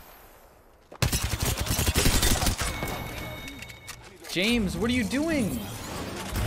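A video game automatic rifle fires in rapid bursts.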